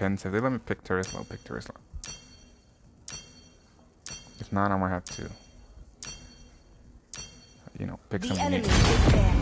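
A game countdown ticks once each second.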